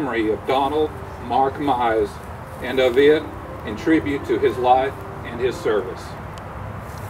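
A man speaks loudly and solemnly outdoors.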